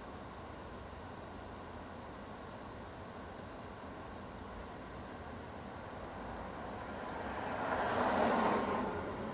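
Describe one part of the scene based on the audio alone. A car rolls slowly along a street, its tyres hissing on the road.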